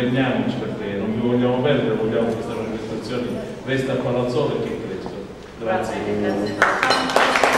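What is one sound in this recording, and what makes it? A woman sings through a microphone in a reverberant room.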